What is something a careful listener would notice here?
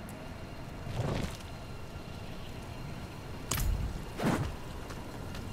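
A soft whoosh sounds as a menu opens and closes.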